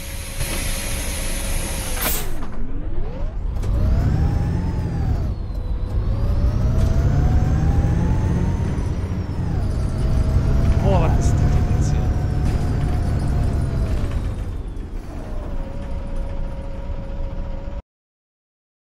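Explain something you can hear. A bus engine whines and roars, rising and falling in pitch as the bus speeds up and slows down.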